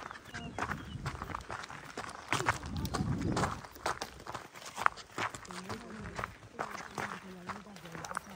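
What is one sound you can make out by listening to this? Footsteps crunch quickly on dry, stony ground.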